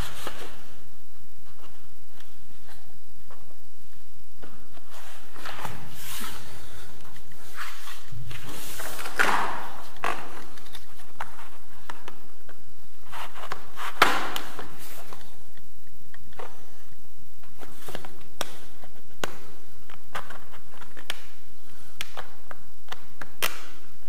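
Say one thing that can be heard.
Hands press and rub on a wooden skirting board.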